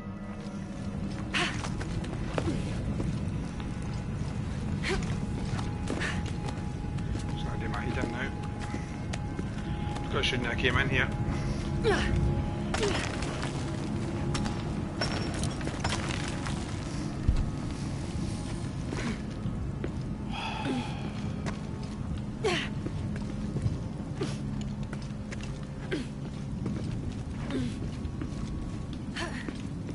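Footsteps scrape and thud on stone.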